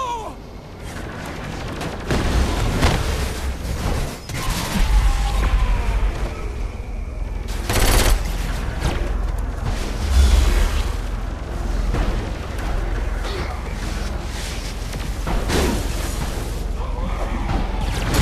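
Energy weapons fire with sharp zaps.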